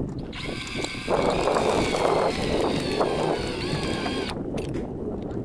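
A power drill whirs steadily.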